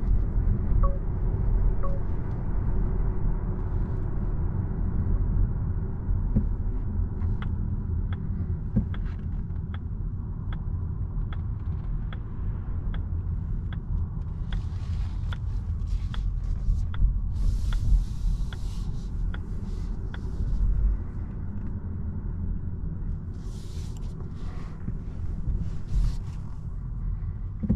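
A car's tyres rumble low and steadily on the road.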